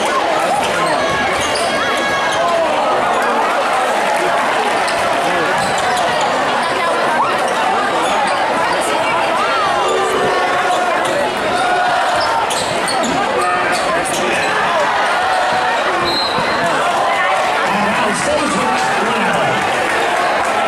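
A large crowd cheers and shouts loudly in an echoing gym.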